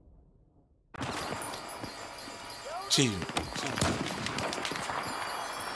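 Gunshots crack rapidly in a video game.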